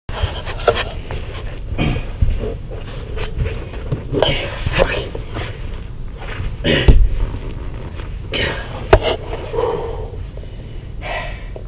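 A heavy mat scrapes and rustles as it is pulled up.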